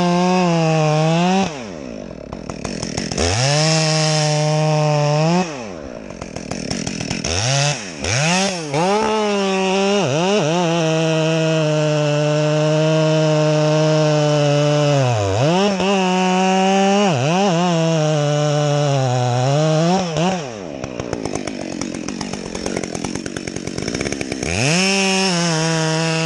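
A two-stroke chainsaw revs high and drops back to idle, cutting through a log.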